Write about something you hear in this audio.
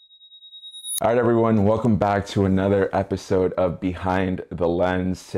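A second young man speaks with animation close to a microphone.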